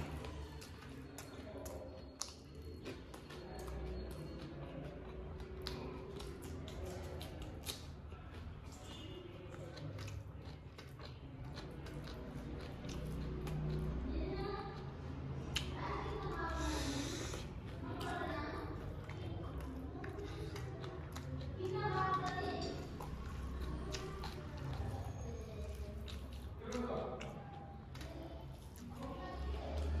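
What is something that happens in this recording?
A man chews food with wet smacking sounds close to a microphone.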